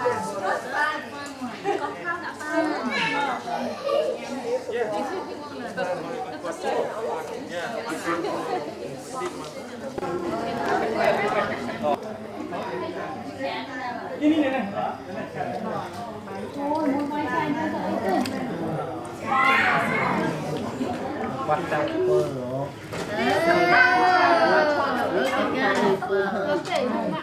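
Several young women chat and talk nearby.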